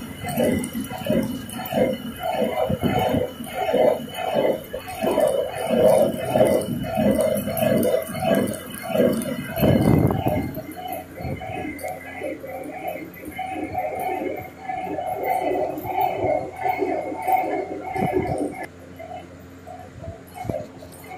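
A hand-turned stone mill grinds with a low rumble.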